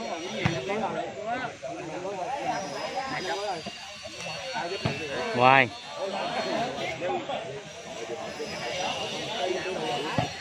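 A crowd of men chatter and shout outdoors.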